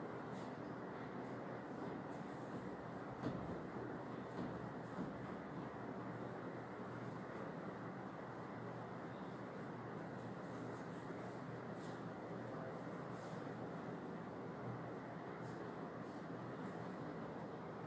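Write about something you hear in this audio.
A cloth rubs across a whiteboard.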